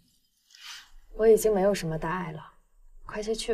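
A third young woman speaks quietly and flatly.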